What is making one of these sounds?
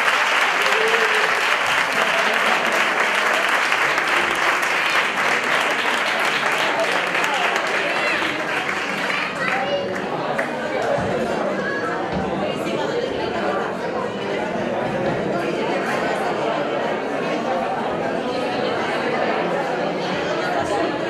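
A group of men sings together in a hall.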